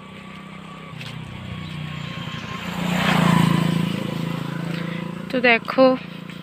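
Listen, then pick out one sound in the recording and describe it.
A motorcycle engine rumbles as it passes close by and fades.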